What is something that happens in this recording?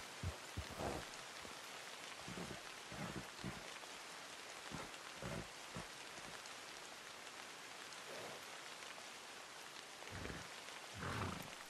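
A horse's hooves crunch slowly through snow.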